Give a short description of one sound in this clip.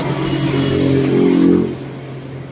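A brush scrapes over cane.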